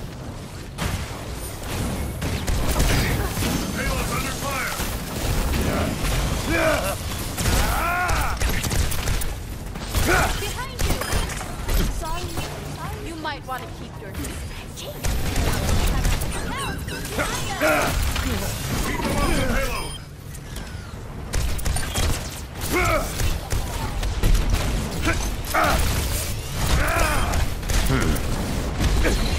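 Game gunfire and energy blasts crackle in rapid bursts.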